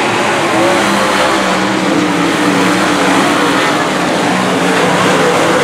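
Several race car engines roar loudly together.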